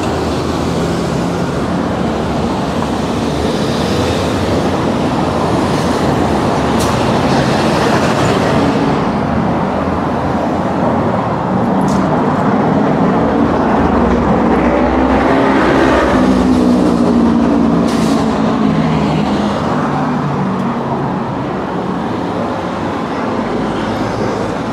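Cars pass close by with engine hum and tyre noise.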